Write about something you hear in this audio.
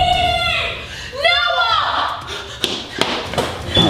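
A girl screams loudly nearby.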